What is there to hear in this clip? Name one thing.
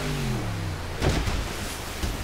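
A boat slams down onto water with a heavy splash.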